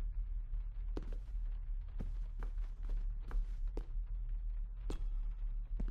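Footsteps thud slowly across a wooden floor.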